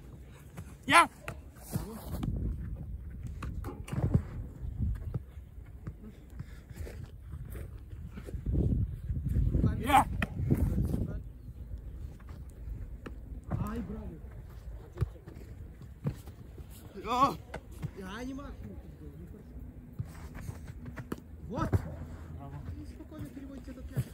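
A football thuds as it is kicked and caught.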